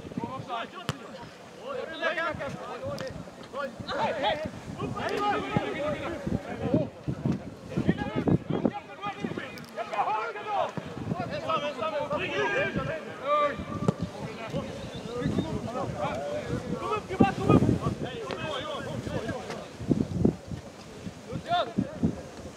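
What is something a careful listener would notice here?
Men and women in a crowd of spectators talk and call out outdoors.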